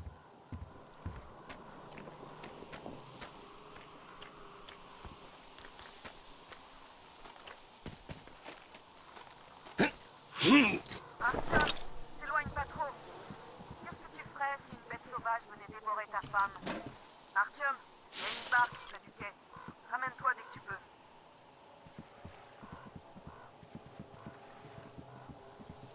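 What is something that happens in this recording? Footsteps crunch on snow and creak on wooden boards.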